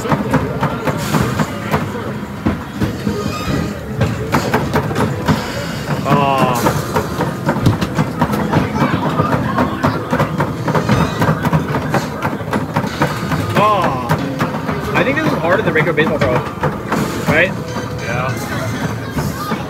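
Arcade machines play electronic music and chimes throughout.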